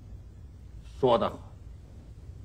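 A second man answers briefly and calmly.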